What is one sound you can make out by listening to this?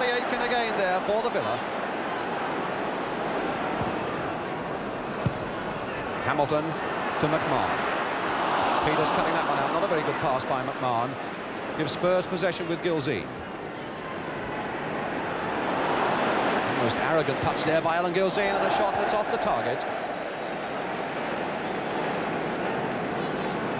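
A large crowd roars and cheers, swelling and falling away.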